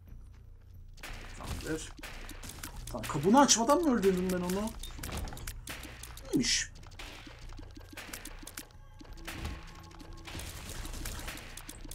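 Small wet shots pop rapidly in a video game.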